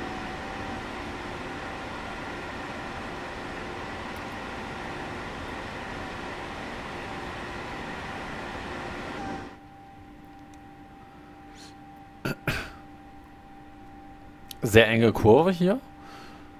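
A train's electric motor hums steadily.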